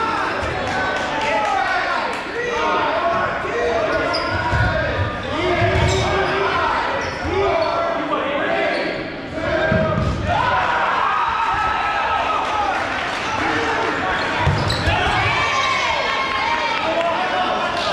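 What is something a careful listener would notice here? Men shout and call out across a large echoing gym.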